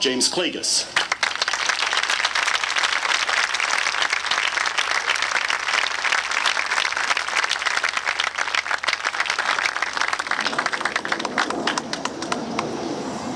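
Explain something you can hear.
An audience applauds outdoors.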